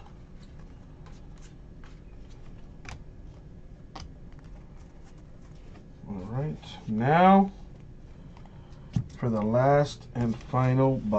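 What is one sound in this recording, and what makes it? Trading cards rustle and click softly as they are handled.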